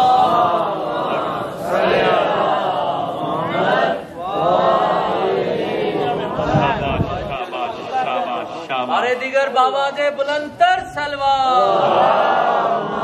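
A man speaks with passion into a microphone, heard through a loudspeaker outdoors.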